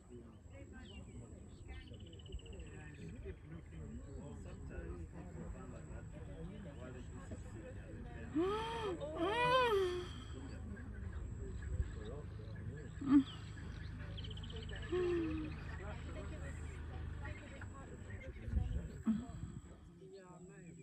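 Birds chirp in the distance.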